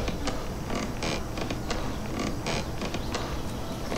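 Hands knock against wooden ladder rungs while climbing.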